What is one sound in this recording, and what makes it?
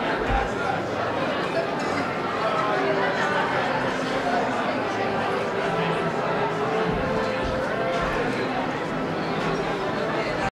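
A crowd of men and women murmurs and chatters close by, indoors.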